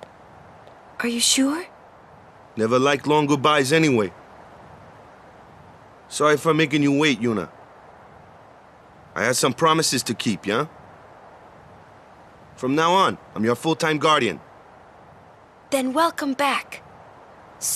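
A young woman speaks softly and briefly.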